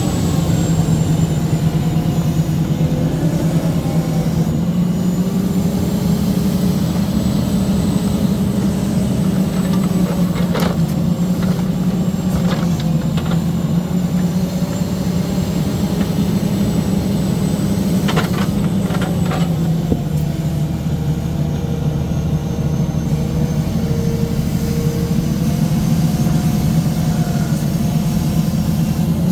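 A diesel engine runs steadily close by.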